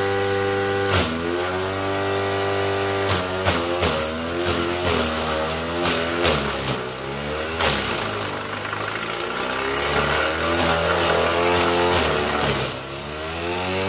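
A machine chops through bunches of green grass, its motor straining and slowing with each load.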